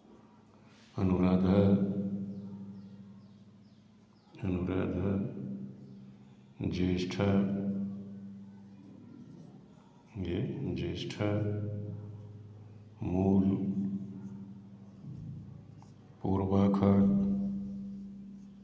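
An elderly man speaks in loud, short bursts with pauses, close to a microphone.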